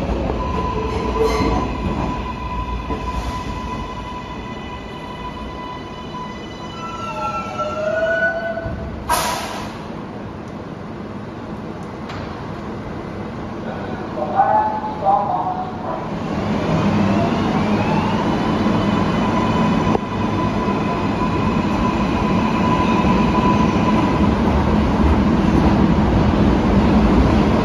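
A subway train hums and rumbles beside the platform in an echoing underground station.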